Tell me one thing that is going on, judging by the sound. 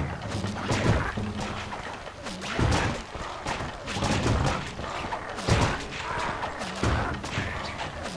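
A burst of fire whooshes and roars.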